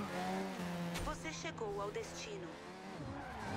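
Tyres screech as a car slides.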